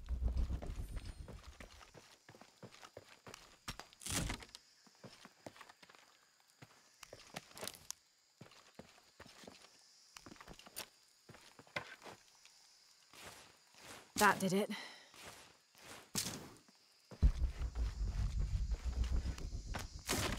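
Footsteps crunch on loose rocky ground.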